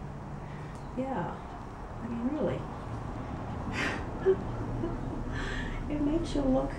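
A cat meows plaintively.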